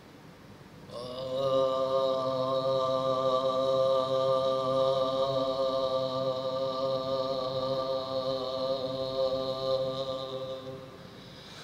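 A man sings a long, drawn-out note into a microphone.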